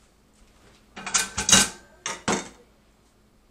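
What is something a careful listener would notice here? A metal pot clanks down on a countertop.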